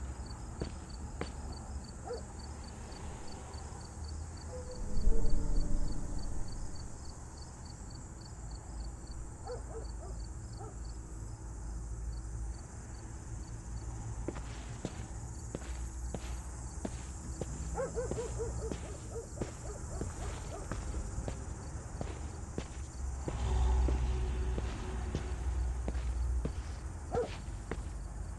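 A woman's footsteps crunch on a forest floor.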